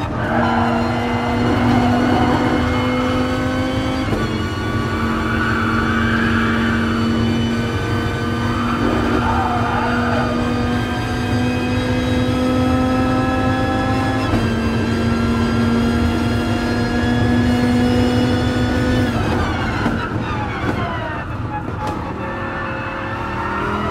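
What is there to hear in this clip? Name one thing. A race car engine roars at high revs, climbing through the gears and then dropping down on braking.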